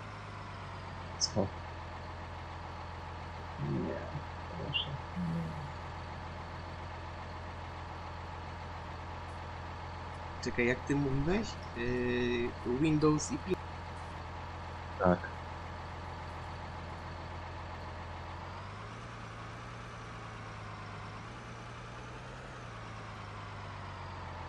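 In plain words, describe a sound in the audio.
A diesel tractor engine hums as it pulls loaded trailers.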